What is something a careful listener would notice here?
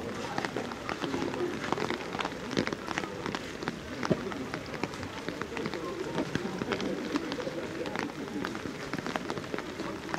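Raindrops patter on an umbrella close by.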